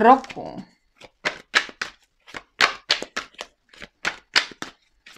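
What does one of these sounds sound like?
Playing cards snap and flutter as they are shuffled.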